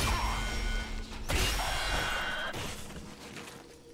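A heavy metal robot crashes to the floor with a loud clank.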